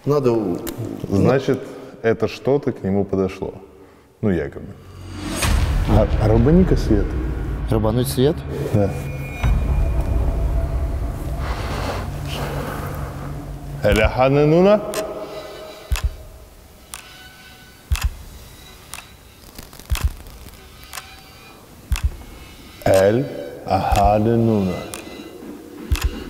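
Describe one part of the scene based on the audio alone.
A man talks in a low voice close to a microphone.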